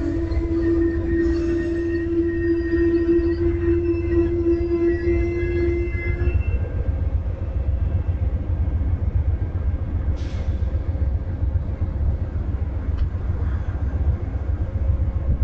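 A train engine rumbles low and steadily.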